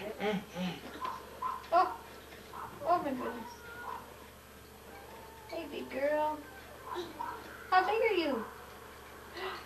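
A woman talks gently to a small child nearby.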